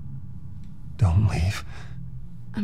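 A man speaks in a low, tired voice.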